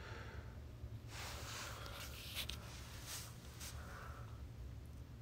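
Hands rustle and shift a padded seat.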